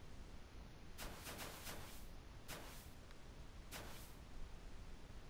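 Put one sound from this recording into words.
Tall grass rustles in short bursts as something walks through it.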